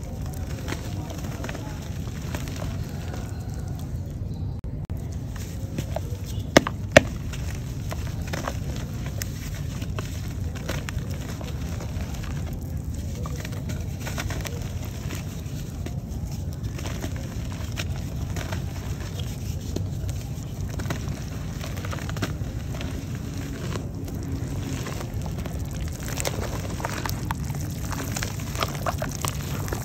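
Chunks of clay splash into water.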